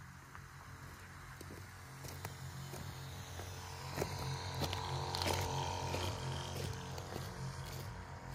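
A sprayer hisses as it mists the field.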